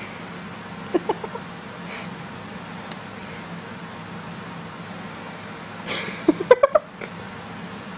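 A cat makes short, chirping little cries.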